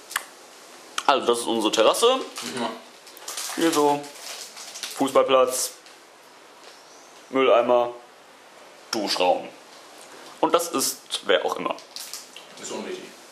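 A young man talks casually, close by, in short bursts.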